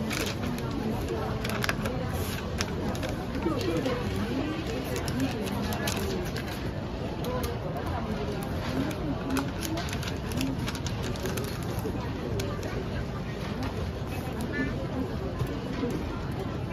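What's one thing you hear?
Paper rustles and crinkles as a box is wrapped.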